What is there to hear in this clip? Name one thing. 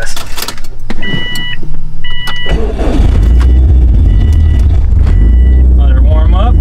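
A car's warning chime beeps repeatedly.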